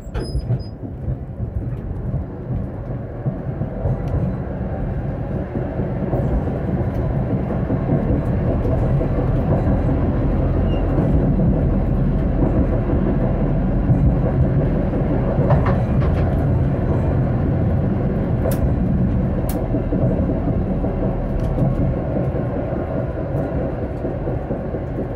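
A tram rumbles steadily along its rails.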